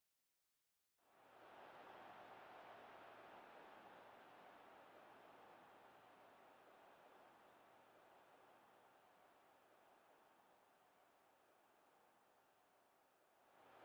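A stadium crowd roars and slowly fades.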